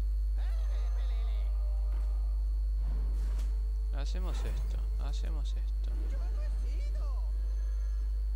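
Bright magical chimes and whooshes sound as cards are played in a game.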